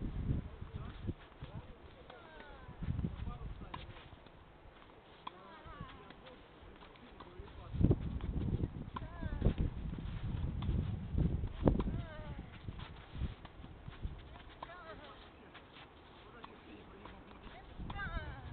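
A tennis ball is struck with a racket, back and forth, in the open air.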